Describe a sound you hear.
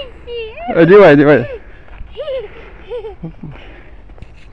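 A small child laughs and squeals close by.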